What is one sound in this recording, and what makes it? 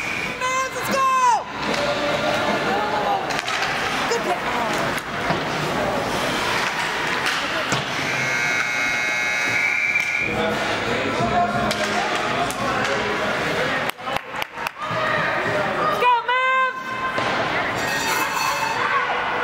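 A crowd of spectators murmurs in a large echoing arena.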